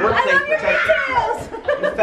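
A young woman laughs loudly.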